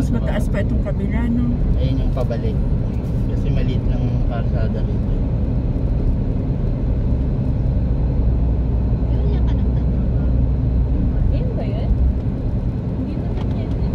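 Tyres roll on the road surface with a low rumble.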